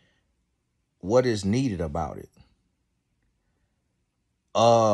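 A man speaks close to the microphone in a calm voice.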